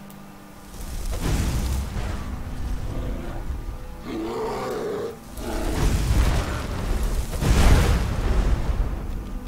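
A crackling electric spell blasts from a hand.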